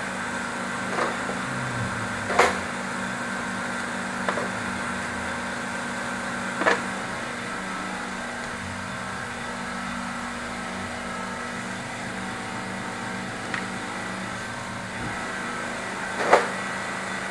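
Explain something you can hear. Metal parts click and clink sharply as they are handled.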